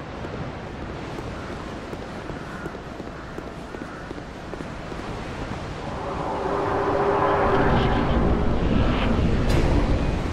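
Footsteps fall on stone.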